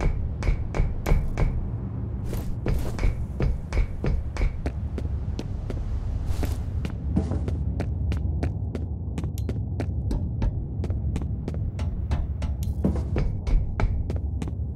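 Footsteps tap steadily on hard floors and metal stairs.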